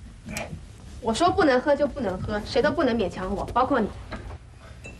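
A young woman speaks firmly and sharply, close by.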